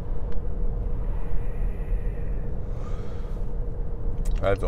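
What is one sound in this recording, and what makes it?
A man exhales with a soft breath.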